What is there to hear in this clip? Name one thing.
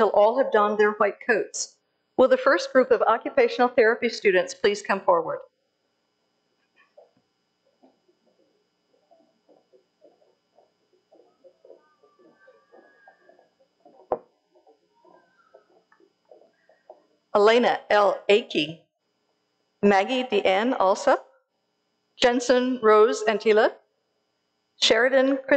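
A woman speaks calmly through a microphone, pausing between phrases.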